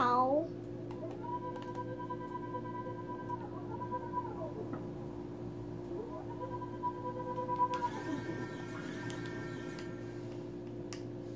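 Soft electronic game music with held tones plays from a television speaker.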